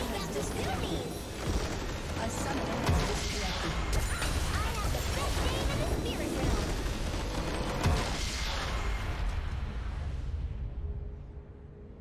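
A crystal structure explodes and shatters with loud, rumbling booms.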